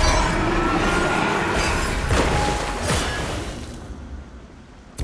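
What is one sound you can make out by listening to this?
A digital card game plays swirling magical sound effects.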